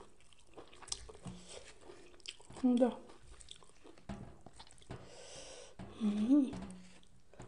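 Chopsticks click and food rustles on a plate.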